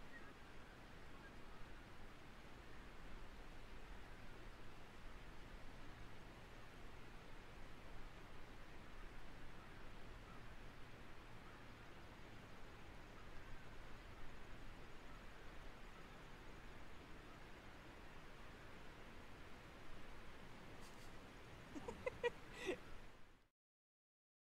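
Water laps softly against a kayak.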